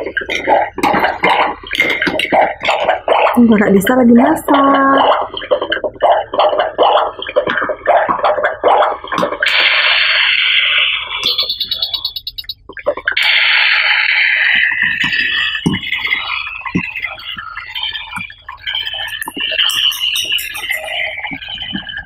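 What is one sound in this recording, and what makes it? Plastic toy pots and lids clatter and knock.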